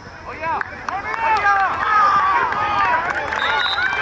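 Football pads and helmets clack together as players collide.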